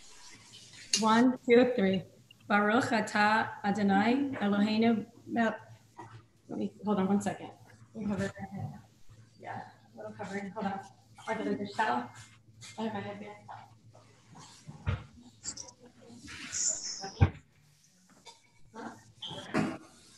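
A young woman talks with animation through an online call.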